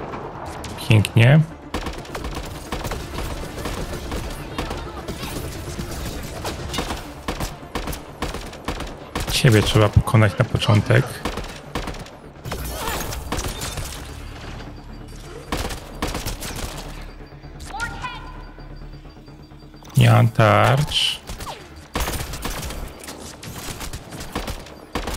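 Rifle shots crack sharply again and again.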